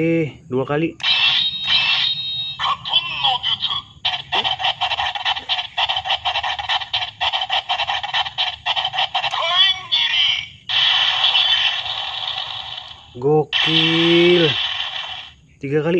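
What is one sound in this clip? A toy plays loud electronic music through a tinny little speaker.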